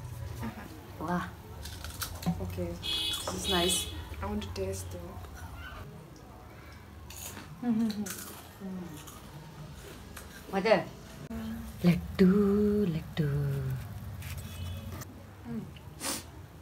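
A young woman chews and crunches on a snack.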